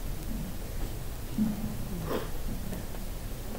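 A middle-aged man speaks calmly close to a microphone.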